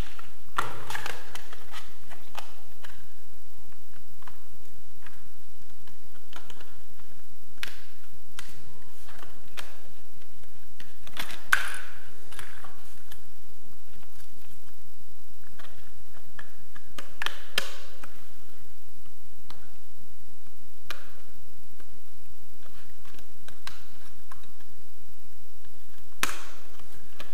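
Small wooden pieces click and tap against each other in someone's hands.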